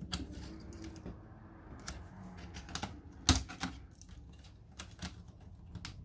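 Fingers tap and scrape against metal parts close by.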